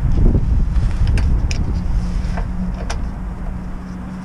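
A metal bolt clicks and scrapes as hands unscrew it.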